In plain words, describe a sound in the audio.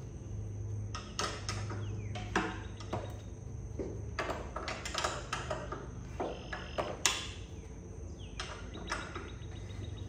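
Metal tools clink and tap against a motorbike frame.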